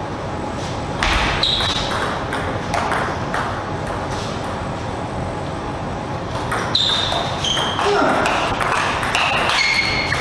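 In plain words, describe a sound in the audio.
A table tennis ball clicks back and forth between paddles and table.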